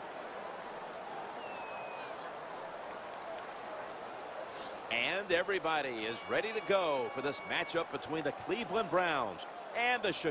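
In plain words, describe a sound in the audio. A large crowd cheers steadily in a stadium.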